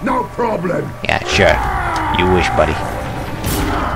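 A man speaks in a gruff, menacing voice.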